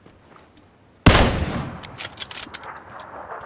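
A gun fires a loud shot that echoes away.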